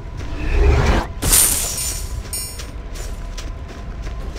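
Coins clink as gold drops.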